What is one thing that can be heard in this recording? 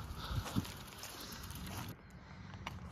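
Bicycle tyres roll over grass.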